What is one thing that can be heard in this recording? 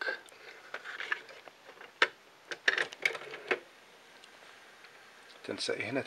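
A cassette lid snaps shut.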